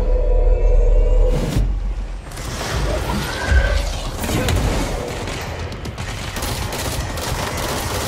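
Debris rumbles and crashes as objects are flung about.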